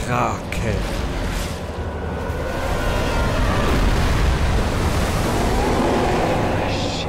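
A huge creature roars and rumbles loudly.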